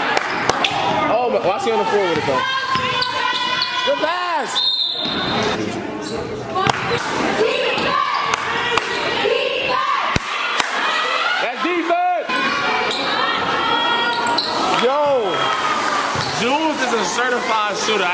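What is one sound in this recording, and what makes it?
A crowd chatters and cheers throughout.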